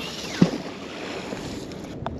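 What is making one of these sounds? A heavy magnet splashes into water.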